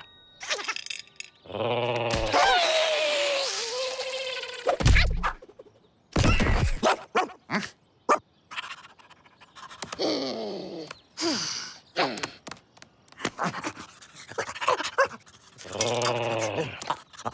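A cartoon raccoon squeals and chatters excitedly.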